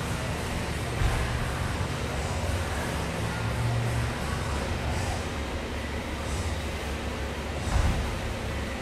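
Dumbbells thud on a hard floor.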